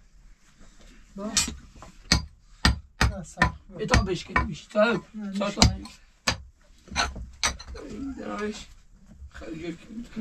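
Shovels scrape and knock against the dirt floor.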